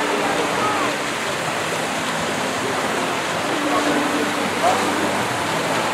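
Water splashes steadily from a fountain into a pool.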